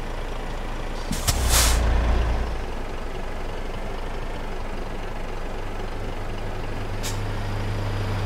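A truck engine idles with a low steady rumble.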